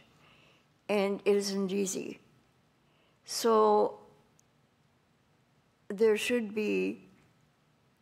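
An elderly woman speaks slowly into a microphone, in short bursts with pauses.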